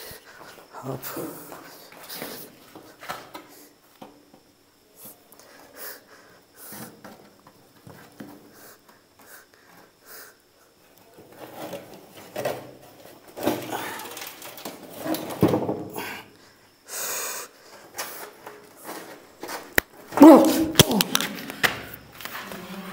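A young man speaks close by in a bare, echoing room.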